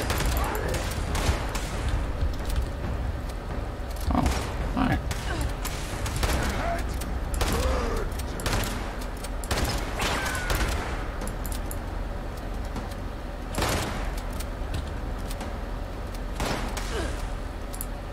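Gunshots fire in bursts, with loud bangs and ringing echoes.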